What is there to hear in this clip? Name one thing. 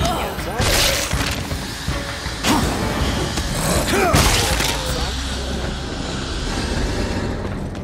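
A heavy blade slashes and strikes with sharp impacts.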